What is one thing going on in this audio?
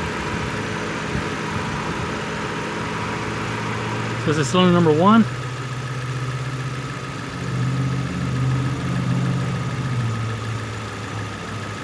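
A car engine idles steadily and revs up briefly.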